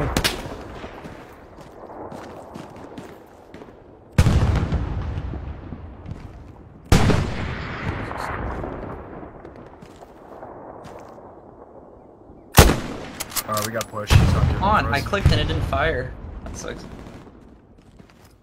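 A rifle fires loud single shots that echo and roll away.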